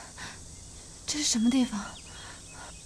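A young woman asks something in an anxious voice nearby.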